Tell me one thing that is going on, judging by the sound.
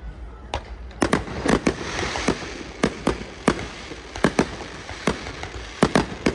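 Fireworks crackle and fizz.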